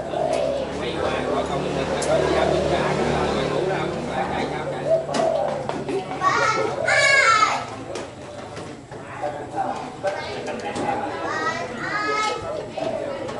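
A group of men talk and laugh together nearby.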